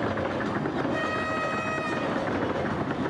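A train horn blares.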